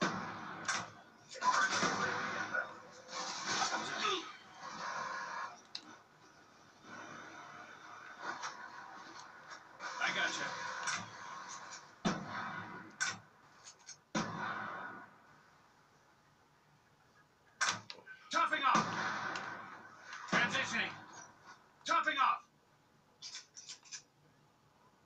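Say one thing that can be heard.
Gunshots from a video game ring out through television speakers.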